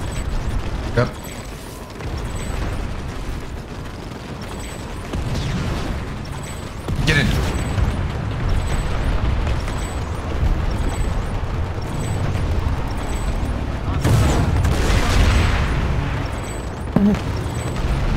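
A heavy gun fires with sharp bangs.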